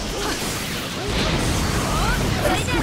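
A huge fiery explosion roars.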